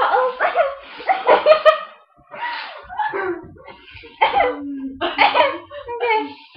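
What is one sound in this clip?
Young women laugh and giggle close by.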